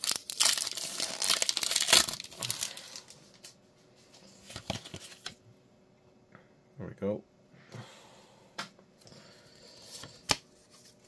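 Cards rustle and shuffle in a hand close by.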